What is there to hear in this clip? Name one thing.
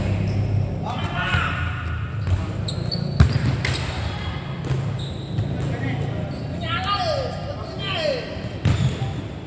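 Young men shout to each other from across a large echoing court.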